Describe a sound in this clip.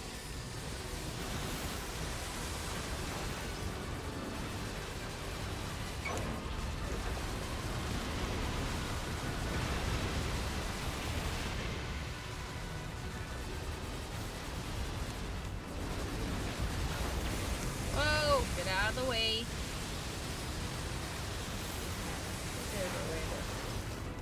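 Game explosions and energy blasts rumble steadily.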